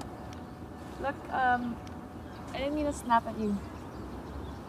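A young woman speaks hesitantly and apologetically nearby.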